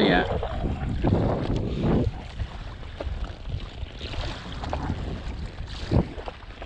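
Wind blows against the boat on open water.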